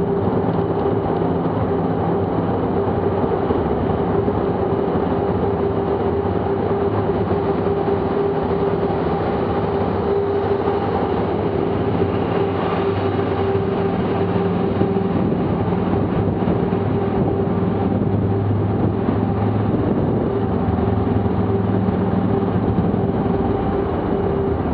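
A motorcycle engine drones steadily up close.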